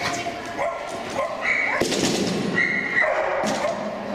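A seesaw bangs down under a dog.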